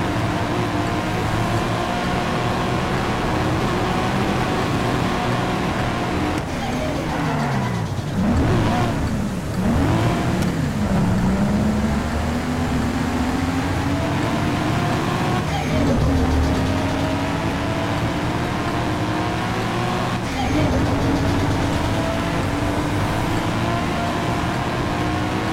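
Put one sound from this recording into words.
Tyres roar on a road at speed.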